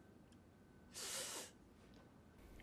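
A young woman speaks sharply up close.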